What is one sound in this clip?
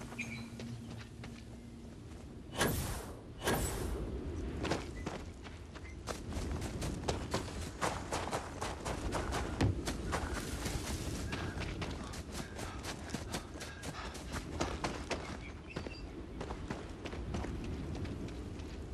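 Footsteps crunch over dry grass and gravel.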